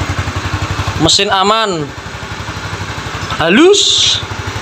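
A motorcycle engine revs up sharply and falls back, twice.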